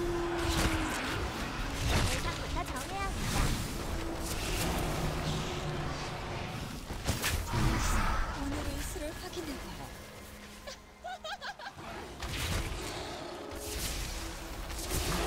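Magic spells whoosh and crash during a fight.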